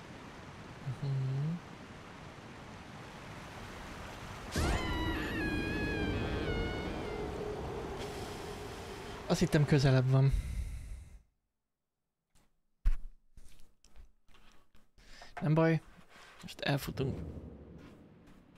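A young man speaks into a close microphone with animation.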